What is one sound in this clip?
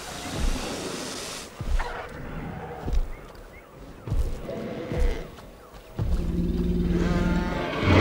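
Heavy footsteps thud slowly on the ground.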